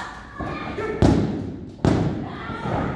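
Bodies slam onto a wrestling ring canvas with heavy thuds.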